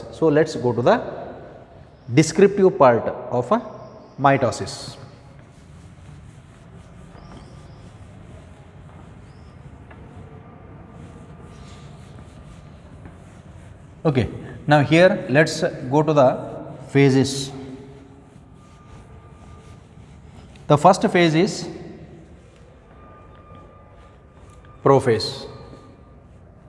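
A man speaks in short bursts, calmly as if teaching, close by.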